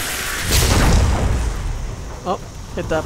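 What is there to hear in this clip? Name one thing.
A magical blast roars and whooshes loudly, then fades.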